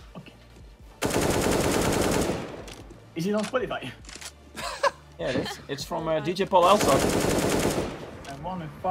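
Rapid rifle fire rattles in bursts.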